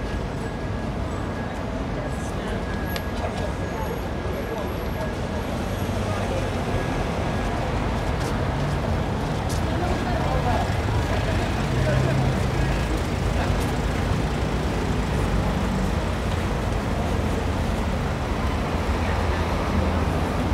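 Outdoor street noise hums steadily with a low rumble.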